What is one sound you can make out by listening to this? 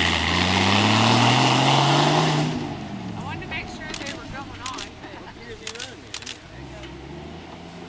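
An off-road vehicle's engine revs loudly close by, then fades into the distance.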